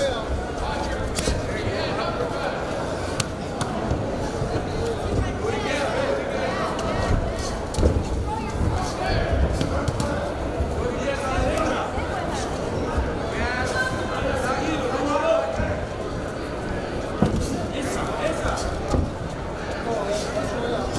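Gloved punches thud against bodies and headgear.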